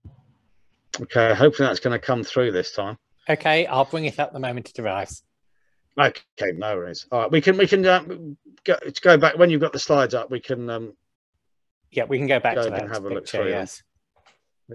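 A man speaks calmly, heard through an online call.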